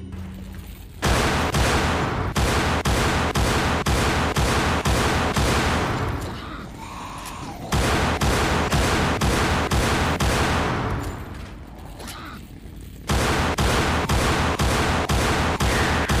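Pistol shots ring out in a narrow corridor.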